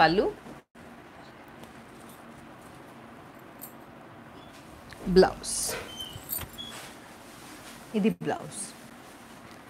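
A woman speaks briefly nearby.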